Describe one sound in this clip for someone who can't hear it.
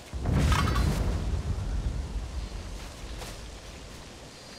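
A game enemy bursts apart in a deep rumbling blast that slowly fades.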